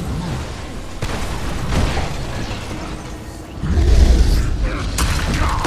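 A heavy creature stomps and slams into the ground with deep booms.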